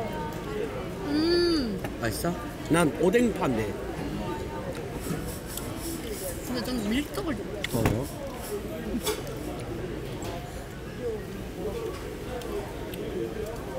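Young women talk and laugh close by with animation.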